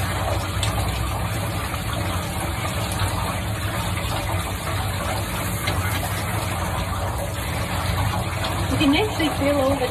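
Water sprays steadily from a shower head.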